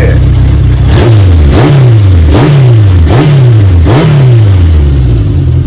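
A Honda CB750 inline-four motorcycle engine revs in sharp throttle blips.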